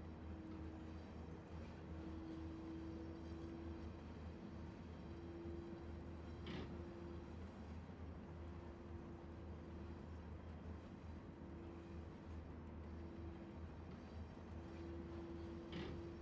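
An electric locomotive hums and rumbles steadily as it rolls along the track.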